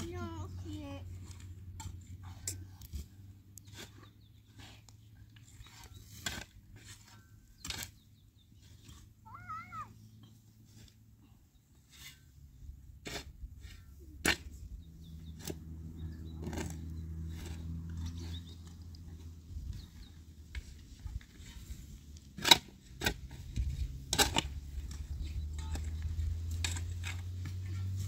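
A shovel scrapes and thuds into dry earth outdoors.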